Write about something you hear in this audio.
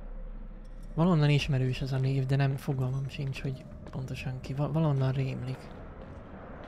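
A young man talks close into a microphone.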